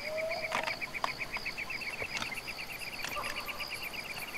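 A gun's metal parts click and clack as it is handled.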